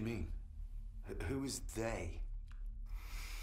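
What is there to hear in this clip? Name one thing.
A young man asks questions in a calm voice.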